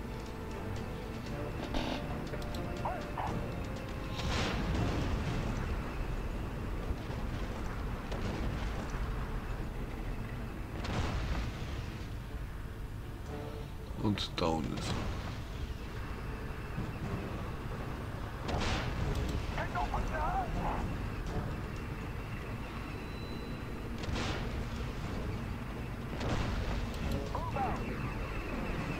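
Tank engines rumble steadily.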